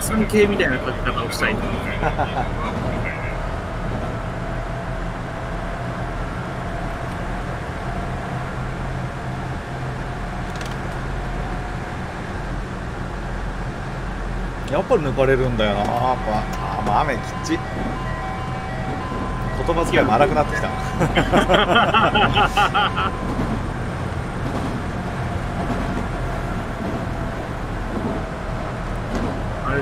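A train's motor hums steadily as it runs along the track.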